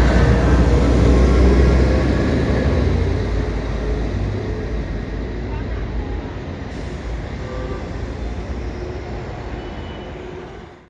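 A bus engine rumbles as the bus pulls away and fades into the distance.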